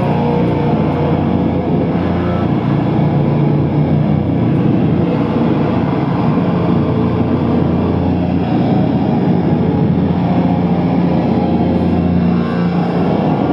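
A drummer plays a drum kit loudly, with crashing cymbals.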